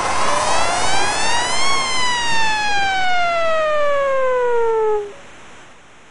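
An electronic goal siren wails, sweeping up and then down.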